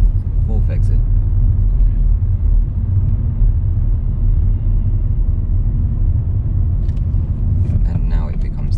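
A man speaks calmly from close by inside the car.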